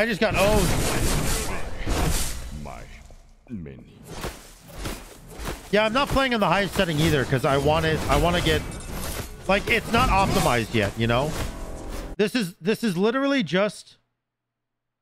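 Game weapons clash and swoosh with bursts of magic.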